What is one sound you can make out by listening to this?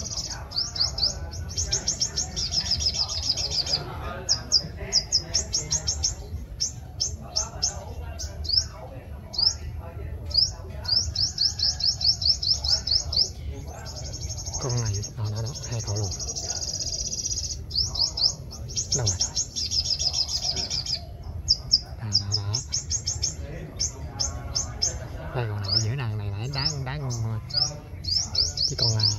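Small birds chirp in fast, high trills close by.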